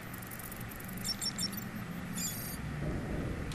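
A handheld electronic decoder beeps.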